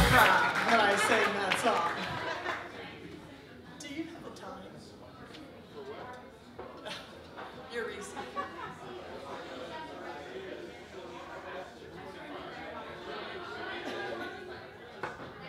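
Drums play with cymbal hits.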